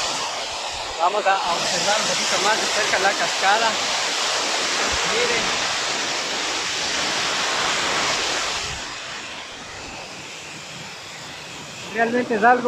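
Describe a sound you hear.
A young man talks close to the microphone with animation.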